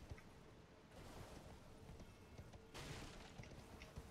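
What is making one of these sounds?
Footsteps crunch on wooden stairs.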